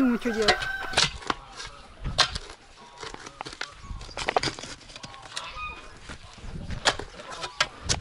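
A spade digs into dry soil with scraping thuds.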